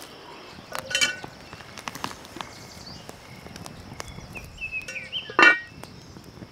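A metal pot lid clanks.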